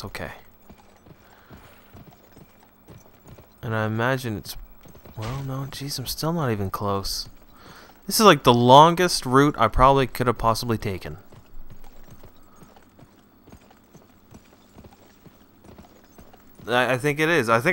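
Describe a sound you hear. Horse hooves clop at a steady gallop on a dirt track.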